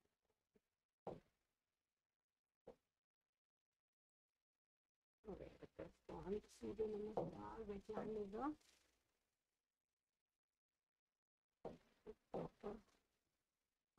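A young woman speaks calmly and clearly into a close microphone, explaining.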